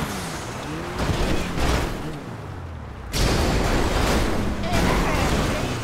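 A car crashes and tumbles with loud metal impacts.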